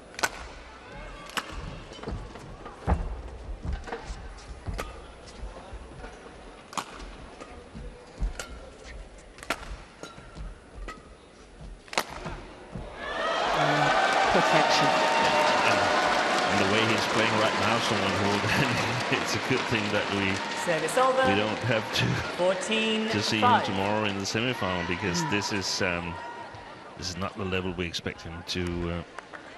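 Rackets strike a shuttlecock in a quick rally, with sharp pops.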